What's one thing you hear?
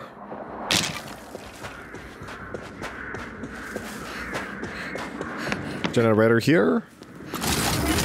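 Footsteps run quickly over sandy ground.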